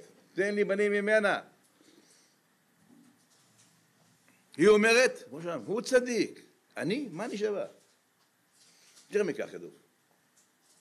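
An elderly man speaks with emphasis into a microphone, pausing between phrases.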